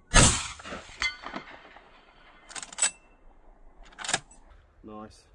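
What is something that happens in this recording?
A rifle's lever action clacks as it is worked.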